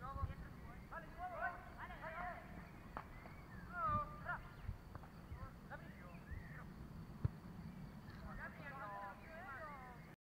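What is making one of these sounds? Children shout and call out to each other in the distance, outdoors.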